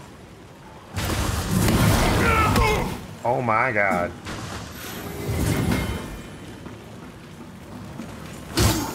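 Fire bursts with a loud roaring whoosh.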